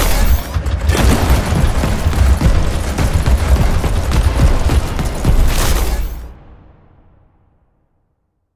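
A vehicle engine roars with a deep, heavy rumble, then fades away.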